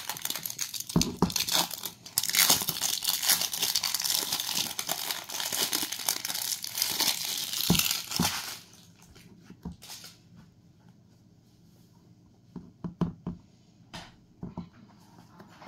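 A jar knocks down onto a wooden floor.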